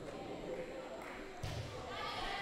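A volleyball thuds off a player's forearms.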